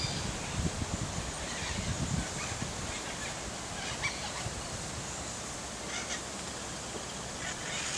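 Grass rustles softly as a cat moves through it.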